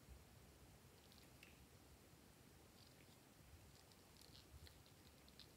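Soft slime squishes and crackles as a toy is pressed into it.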